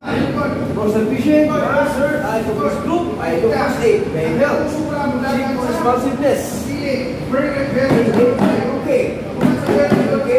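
A man speaks loudly and with animation nearby.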